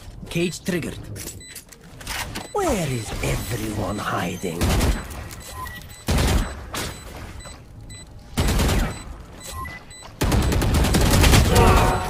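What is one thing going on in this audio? A rifle fires in short bursts of sharp shots.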